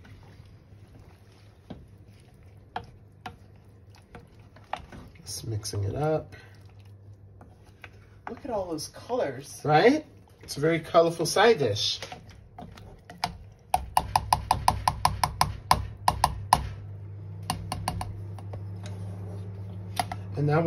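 A spoon scrapes and clinks against a metal pot.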